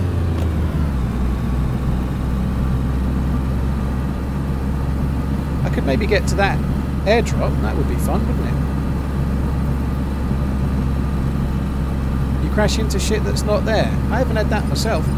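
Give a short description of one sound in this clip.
A car engine hums steadily while driving over rough ground.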